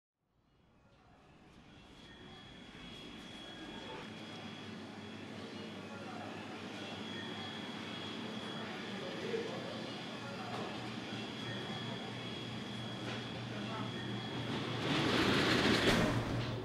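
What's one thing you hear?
Voices of several people murmur indistinctly in the background.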